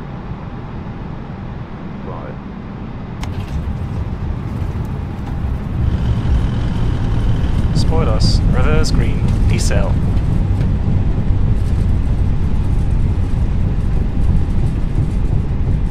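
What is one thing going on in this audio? Aircraft wheels rumble over a runway.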